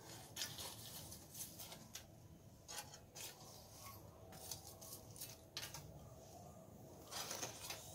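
A metal tool scrapes and pokes at glowing coals.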